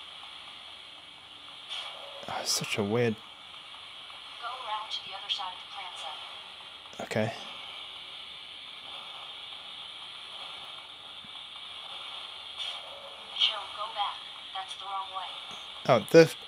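Video game sound effects play from a small handheld speaker.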